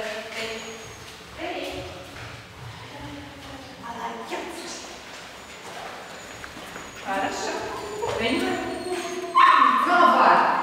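A woman talks to a dog in a lively, coaxing voice in an echoing room.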